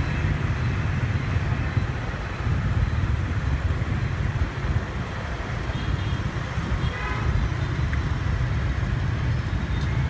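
Wind buffets the microphone on a moving motorbike.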